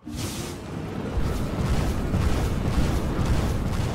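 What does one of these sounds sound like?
A fiery spell whooshes and crackles.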